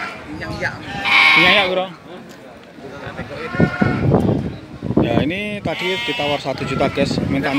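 Sheep bleat loudly close by.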